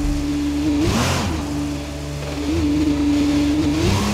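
Tyres screech as a racing car spins out.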